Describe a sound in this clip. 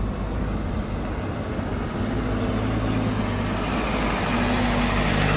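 A truck engine grows louder as the truck passes close by.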